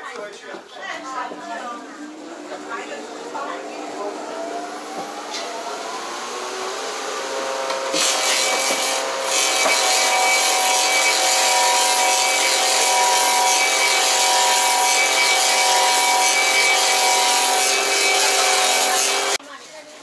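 A woodworking machine spins up and runs with a loud, steady whine.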